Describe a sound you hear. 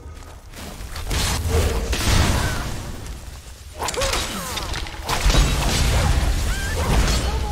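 A magic spell crackles and whooshes loudly.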